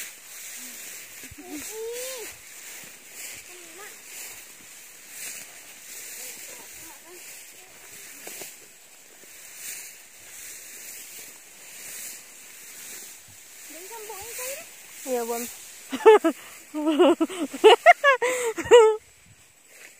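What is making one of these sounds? A woman talks and calls out loudly nearby.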